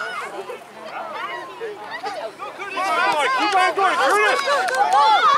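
Young children shout and chatter in high voices outdoors.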